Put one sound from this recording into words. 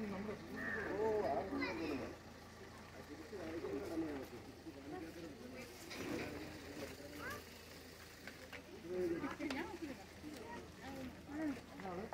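An elephant chews and crunches food.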